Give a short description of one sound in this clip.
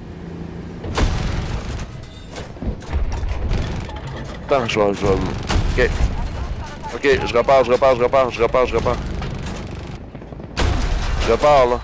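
A tank cannon fires with heavy booming blasts.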